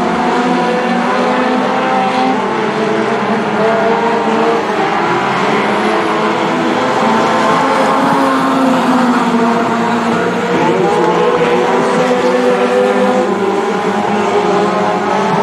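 Race car engines roar loudly as cars speed by.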